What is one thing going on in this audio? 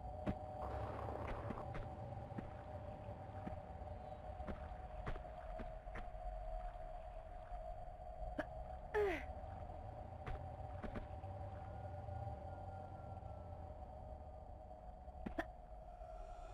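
Footsteps tap on stone at a steady pace.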